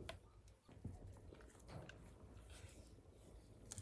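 A pot of soup simmers and bubbles softly.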